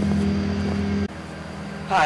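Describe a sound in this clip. Footsteps scuff on pavement.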